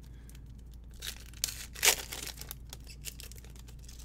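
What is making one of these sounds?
A foil wrapper crinkles and tears in someone's hands.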